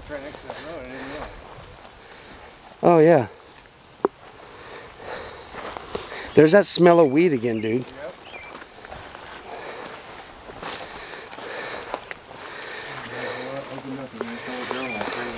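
Leafy plants rustle and swish as a man pushes through them on foot.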